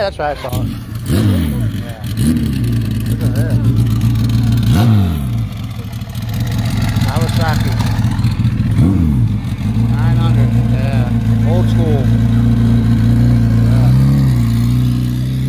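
A motorcycle engine revs sharply several times.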